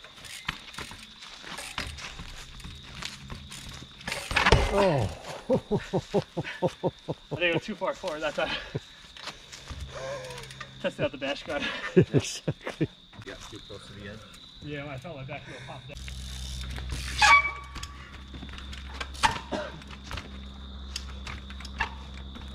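Bicycle tyres thump and knock against rock.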